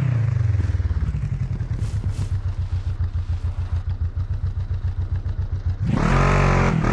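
An engine idles with a low, chugging rumble while crawling over rocks.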